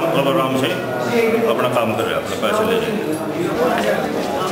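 A middle-aged man speaks calmly and firmly into close microphones.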